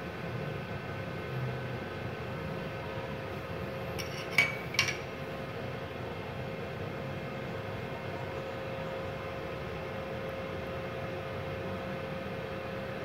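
A welding machine hums steadily with a low electrical drone.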